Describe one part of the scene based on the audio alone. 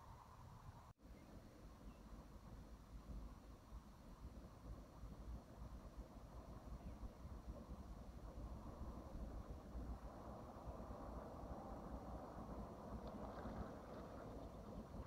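Gentle water laps softly outdoors.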